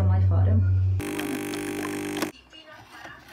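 A coffee machine whirs loudly as it pours.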